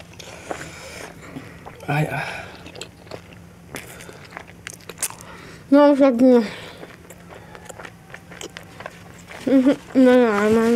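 A young woman chews food with soft, wet smacking sounds close by.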